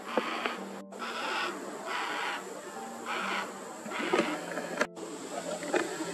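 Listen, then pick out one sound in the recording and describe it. A cockatoo cracks and tears at wood in a tree with crunching snaps.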